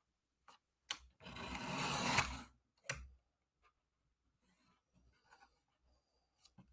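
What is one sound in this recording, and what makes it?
A paper trimmer blade slides along, slicing through card.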